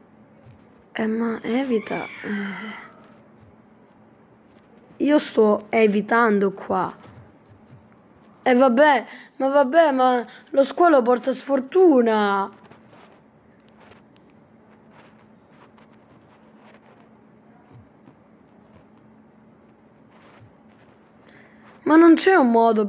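A child talks with animation close to a microphone.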